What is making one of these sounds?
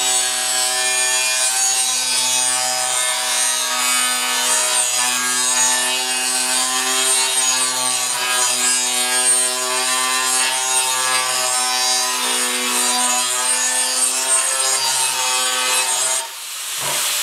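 An angle grinder whines loudly as it grinds against metal.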